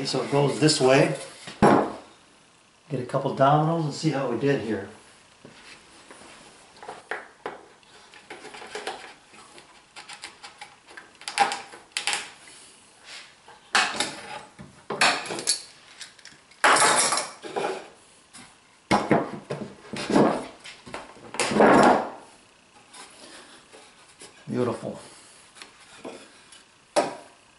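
Wooden boards knock and clatter against each other.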